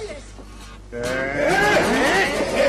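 A woman sings with a wavering voice.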